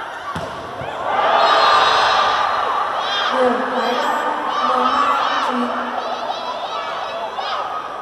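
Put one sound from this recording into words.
A crowd in a large echoing hall cheers and claps.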